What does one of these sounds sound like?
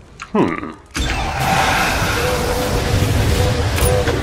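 Fireballs explode with a deep boom.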